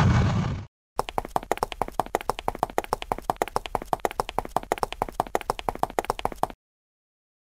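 Footsteps tap quickly and evenly.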